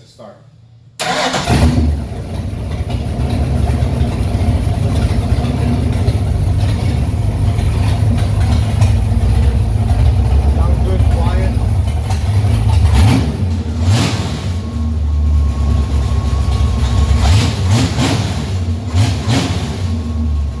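A car engine starts and idles with a loud, steady rumble.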